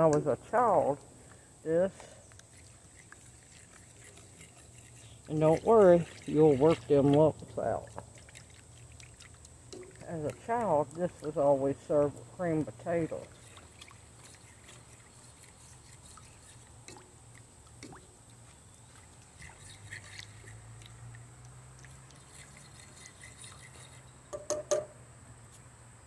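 A fork scrapes and taps against a metal pan.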